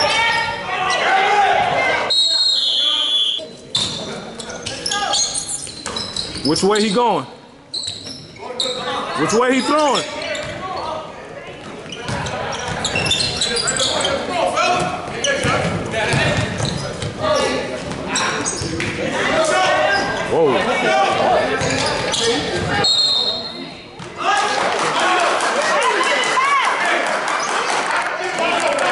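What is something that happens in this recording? Spectators shout and cheer close by, echoing in a large gym.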